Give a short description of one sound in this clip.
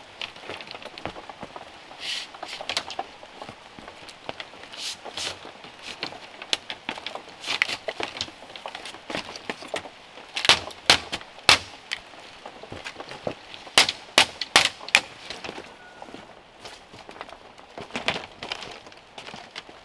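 Boots tread on bamboo strips.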